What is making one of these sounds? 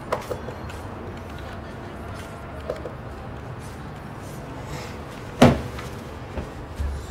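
A sofa creaks softly as a child gets up.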